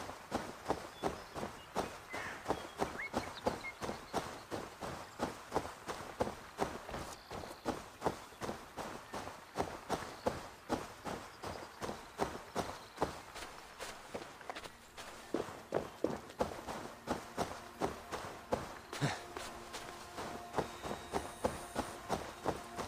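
Footsteps run quickly through grass, steady and rhythmic.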